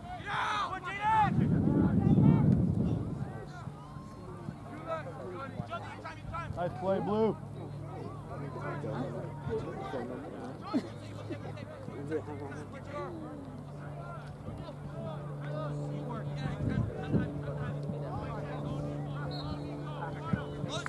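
Young players shout to each other across an open field, heard from a distance.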